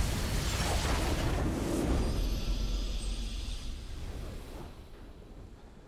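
A triumphant fanfare swells and slowly fades.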